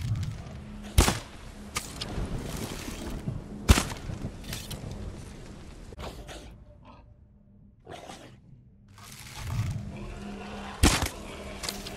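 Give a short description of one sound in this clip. A bowstring snaps sharply as arrows are loosed.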